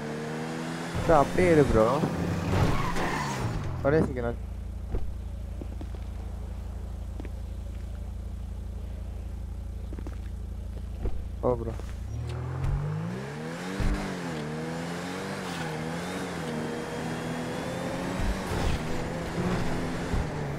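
A car engine roars and slows, drops to a low steady idle, then revs up hard again.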